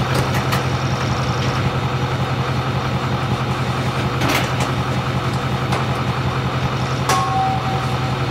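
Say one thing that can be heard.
A garage door opener motor hums as a door rolls up.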